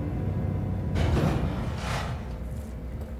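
Elevator doors slide open with a whoosh.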